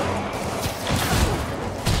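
A web shooter fires with a sharp hissing burst.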